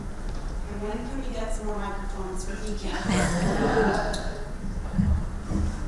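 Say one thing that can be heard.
A group of people laughs.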